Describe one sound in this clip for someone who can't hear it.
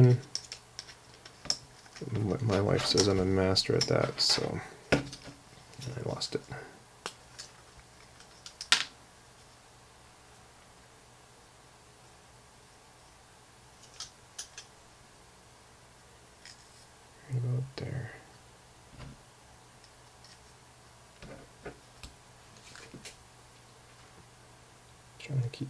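Thin plates tap and clack together as they are handled.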